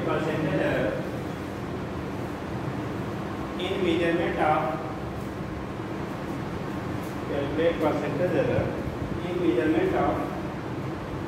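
A man speaks loudly and clearly, as if teaching.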